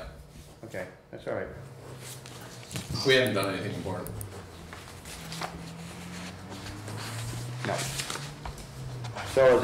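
Papers rustle as they are handled.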